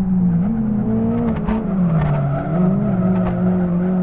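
Tyres squeal briefly through a corner.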